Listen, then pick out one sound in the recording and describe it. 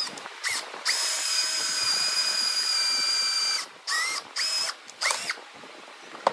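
A cordless drill bores into pine.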